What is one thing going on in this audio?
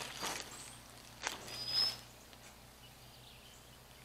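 A hoe scrapes and chops into dry, stony soil.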